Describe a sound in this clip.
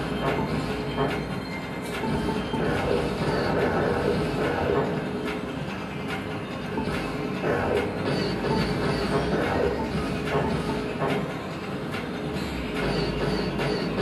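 Video game sound effects of whooshing and zapping play from a television.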